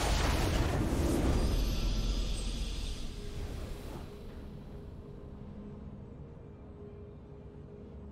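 A triumphant fanfare swells and then fades softly.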